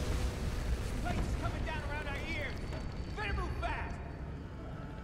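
A man speaks urgently and close.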